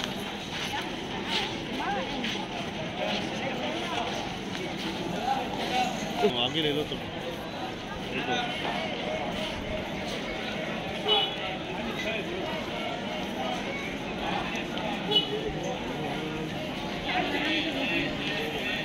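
A crowd of men and women chatter all around.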